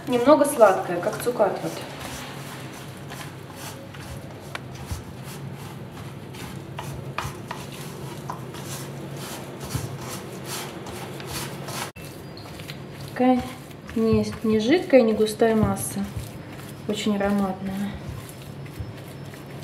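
A spatula scrapes and knocks against a metal bowl.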